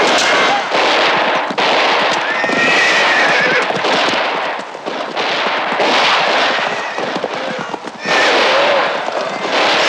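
Men shout and yell.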